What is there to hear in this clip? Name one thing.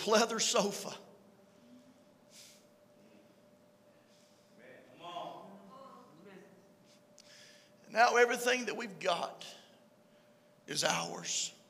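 A man speaks with animation into a microphone, in pauses, in a room with a slight echo.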